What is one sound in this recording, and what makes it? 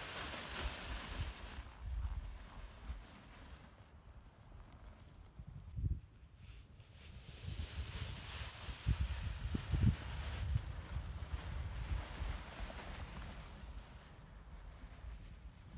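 A paraglider wing rustles and flaps as it fills with air.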